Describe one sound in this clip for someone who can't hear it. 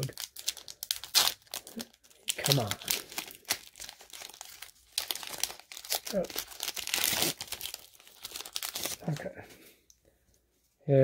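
A foil wrapper crinkles and rustles as it is torn open by hand.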